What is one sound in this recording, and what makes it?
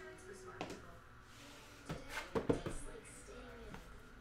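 A cardboard box scrapes and taps on a table.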